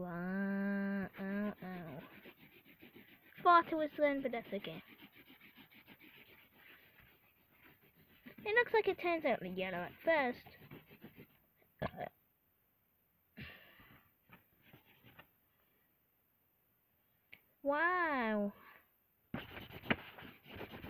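A felt-tip marker scratches rapidly back and forth on paper.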